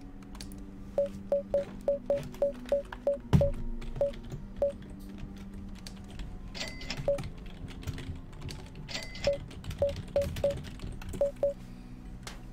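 Short electronic menu beeps sound in quick succession.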